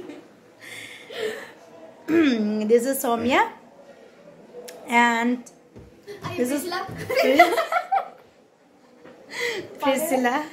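Young women laugh nearby.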